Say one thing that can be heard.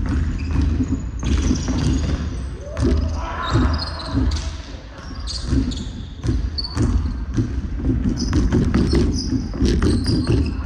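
Young players call out to each other across the echoing hall.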